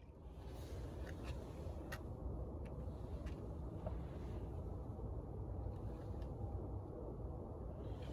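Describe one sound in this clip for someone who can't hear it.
A cardboard box rustles and taps as it is handled.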